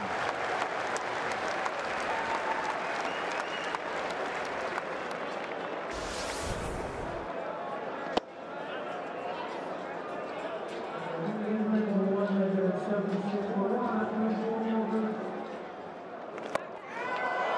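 A large crowd murmurs and cheers outdoors.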